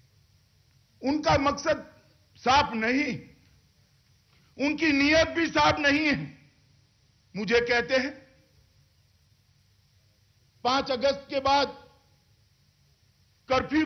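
A middle-aged man speaks forcefully into a microphone, in short bursts with pauses, amplified over loudspeakers.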